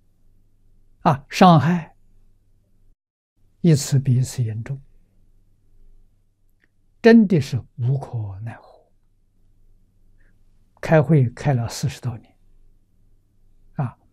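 An elderly man speaks calmly into a clip-on microphone, in short phrases with pauses.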